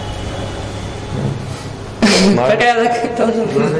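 A man laughs.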